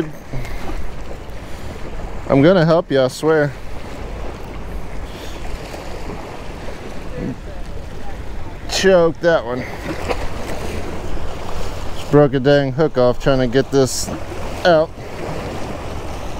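Small waves wash and splash against jetty rocks.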